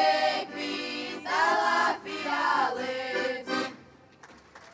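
A mixed choir of young men and women sings together through loudspeakers outdoors.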